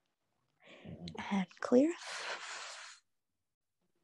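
A young woman speaks briefly and calmly, close to a microphone.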